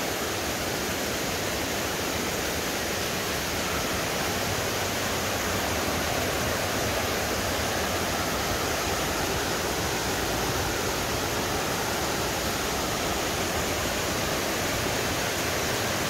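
A stream rushes steadily over rocks outdoors.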